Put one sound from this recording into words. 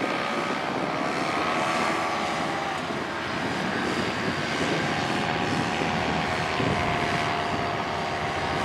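Wind rushes across the microphone outdoors.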